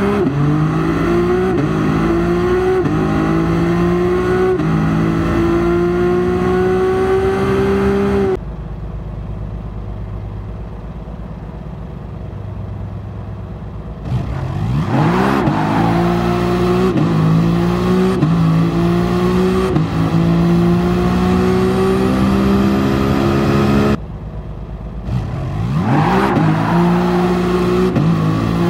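A racing car engine revs hard, climbing in pitch and dropping with each gear change.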